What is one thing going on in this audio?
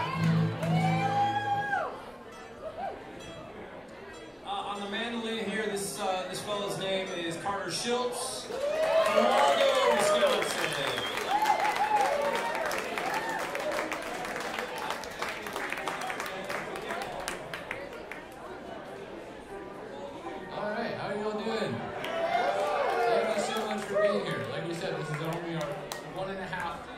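A string band plays a lively tune with banjo, fiddle and guitar.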